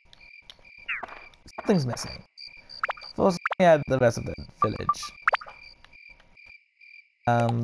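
Short electronic menu blips and swooshes sound.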